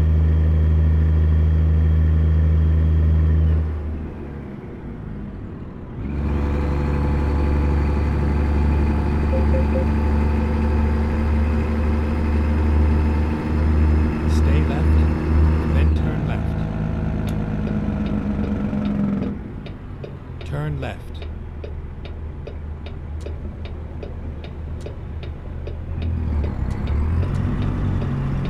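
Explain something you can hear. A truck engine drones steadily, its pitch shifting as the truck shifts gears.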